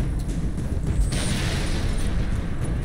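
An energy blast crackles and fizzes close by.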